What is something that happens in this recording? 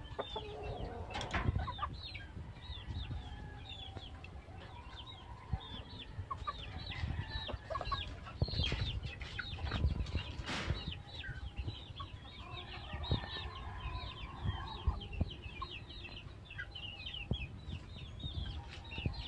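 Small birds chirp quickly, without a break.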